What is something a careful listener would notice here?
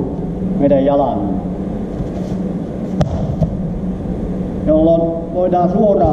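A man speaks calmly nearby in an echoing hall.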